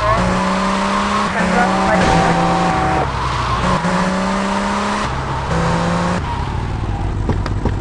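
A car engine hums and revs steadily.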